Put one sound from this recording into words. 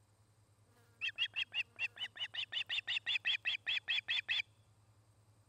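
A young bird of prey calls out close by in a rapid series of shrill, piercing chirps.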